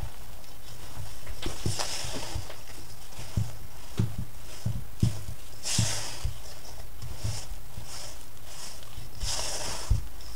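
A hand kneads sticky yeast dough in a metal bowl.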